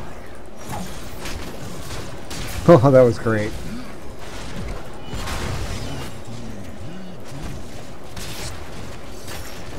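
Fantasy battle sounds of magic blasts and clashing weapons ring out.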